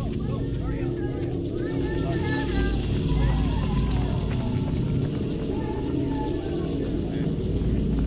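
Many footsteps thud quickly on pavement.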